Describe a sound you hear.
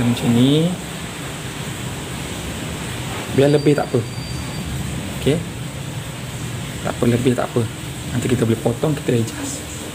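Adhesive tape peels off a roll with a soft rip.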